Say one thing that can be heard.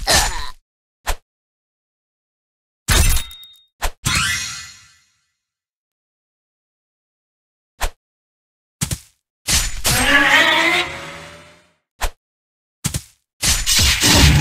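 Swords clash and slash in short, sharp bursts.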